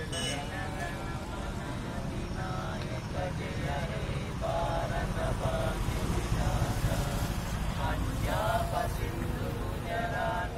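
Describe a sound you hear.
A group of men chant loudly together outdoors.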